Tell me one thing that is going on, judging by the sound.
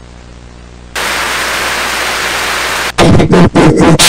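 Loud static hiss crackles.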